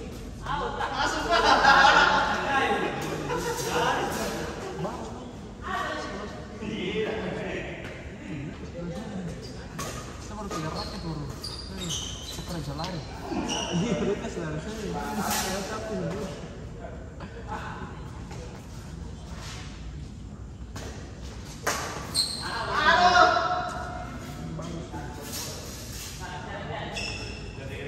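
Young men call out and talk during play in a large echoing hall.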